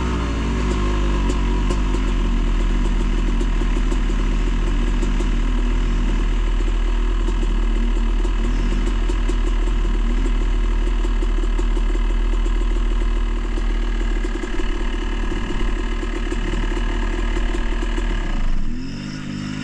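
A motorcycle engine idles steadily close by, then cuts out.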